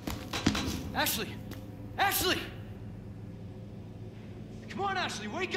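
A young man calls out urgently, close by.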